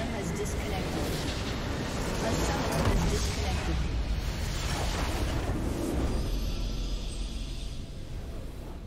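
A large structure explodes with a loud, rumbling roar.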